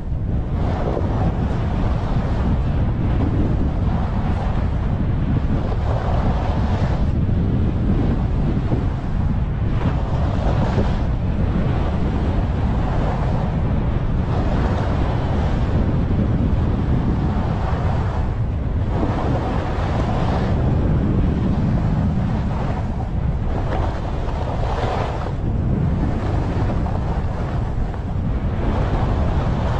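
Wind rushes loudly past the microphone throughout.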